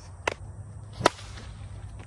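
A plastic bat smacks a plastic ball with a sharp crack.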